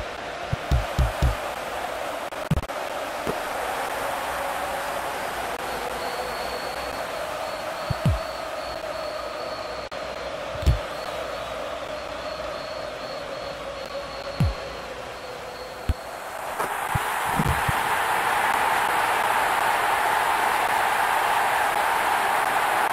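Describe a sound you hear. A large stadium crowd roars steadily and swells louder later on.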